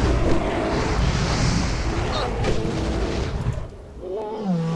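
A fiery spell roars and crackles.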